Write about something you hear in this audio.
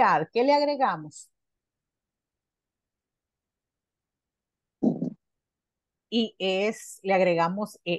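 A woman speaks clearly through an online call, with pauses.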